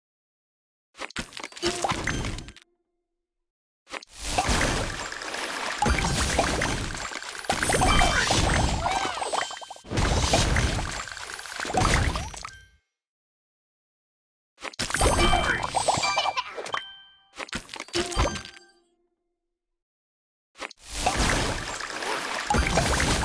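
Bright game chimes and popping sound effects play in bursts.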